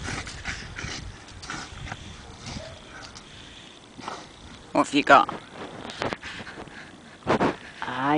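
A dog digs and scrapes in loose sand.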